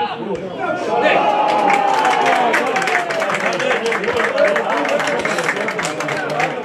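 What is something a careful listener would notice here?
A small crowd cheers loudly.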